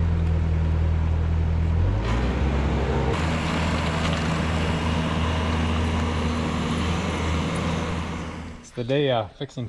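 A skid steer loader's diesel engine runs and rumbles steadily.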